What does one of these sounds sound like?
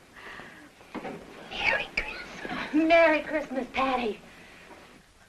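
A young girl speaks with animation nearby.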